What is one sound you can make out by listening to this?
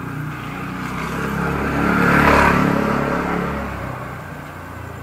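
A vehicle passes close by, growing louder and then fading.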